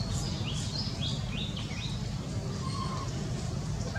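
A monkey gives short high squeaks close by.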